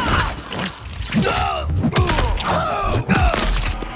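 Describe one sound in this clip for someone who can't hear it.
A magical energy attack whooshes and crackles.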